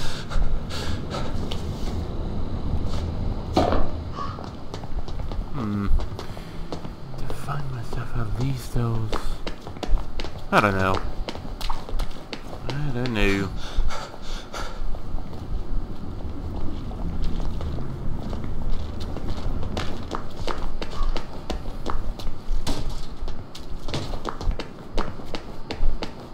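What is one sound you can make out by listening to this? Footsteps tap steadily on cobblestones.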